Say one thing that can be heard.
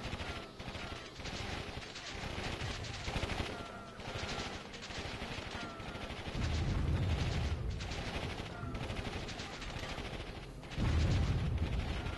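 Tank guns fire rapidly.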